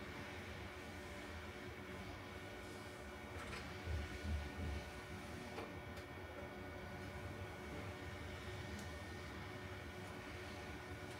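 Equipment hums steadily.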